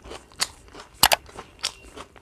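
A woman bites into crunchy food with a loud crunch.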